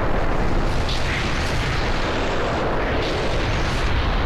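Stone walls crumble and break apart with a deep rumble.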